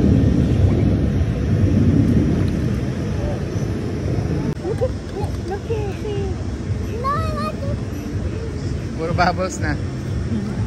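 Water bubbles and churns loudly close by.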